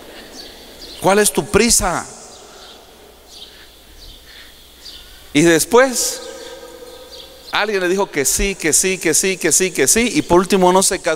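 A man speaks with animation through a microphone in a large echoing hall, in bursts with pauses.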